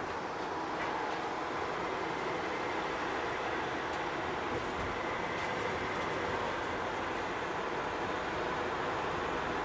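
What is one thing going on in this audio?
A van's engine hums steadily while driving on a highway.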